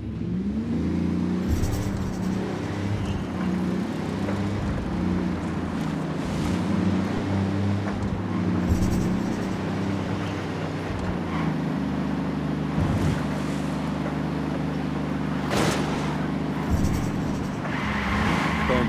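A pickup truck engine hums steadily as it drives along a road.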